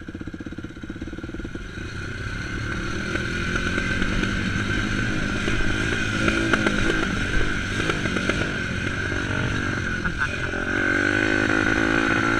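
A dirt bike engine revs and roars up close.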